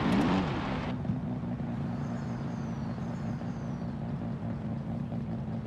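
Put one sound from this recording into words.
A car engine idles quietly.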